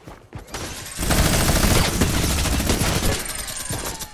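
A gun fires rapidly in a loud burst.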